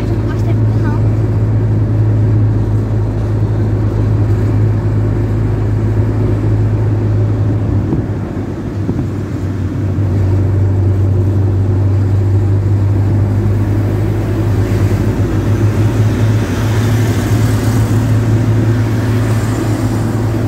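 A car engine hums steadily from inside the car, rising and falling with speed.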